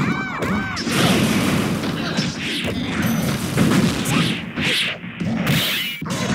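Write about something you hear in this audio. Heavy punches and blasts land in quick succession in a fighting game.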